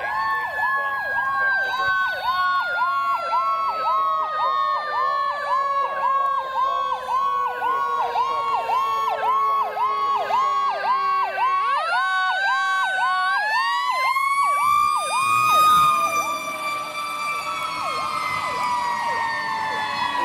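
A fire engine's siren yelps rapidly and passes close by.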